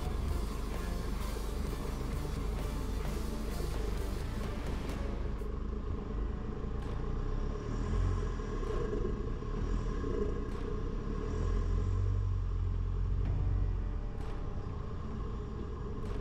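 A vehicle engine rumbles steadily while driving slowly.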